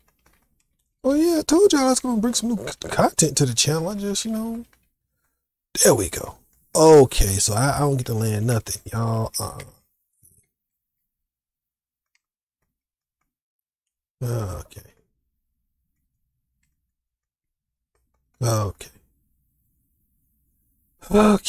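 A man talks into a microphone with animation, in bursts with pauses.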